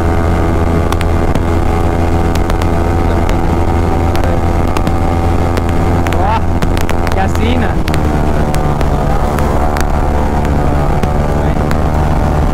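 A motorcycle engine hums steadily up close at speed.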